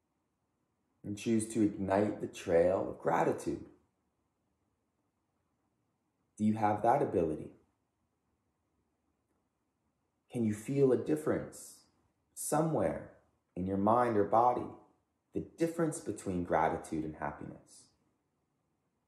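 A man speaks calmly and slowly close by, with long pauses.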